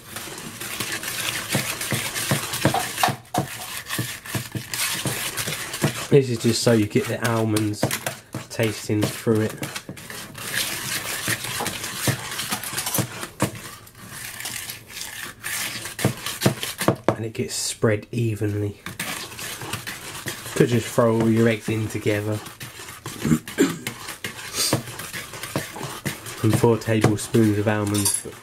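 A wire whisk beats batter in a bowl, scraping and tapping quickly.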